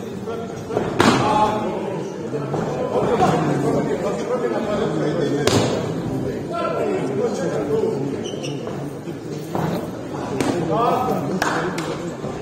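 Punches thud against a boxer's body.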